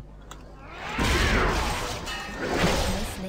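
A burst of fire roars loudly.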